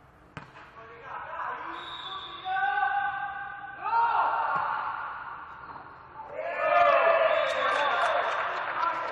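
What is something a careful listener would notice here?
Young men shout and call out to each other across an echoing court.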